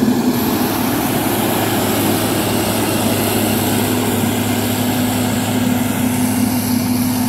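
Outdoors, wind buffets the microphone.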